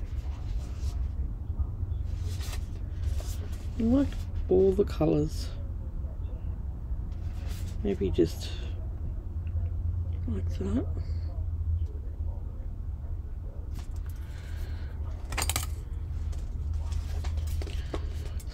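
Stiff paper rustles and slides as it is handled.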